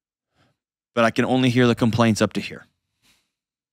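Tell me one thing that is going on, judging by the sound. A man speaks with animation into a microphone close by.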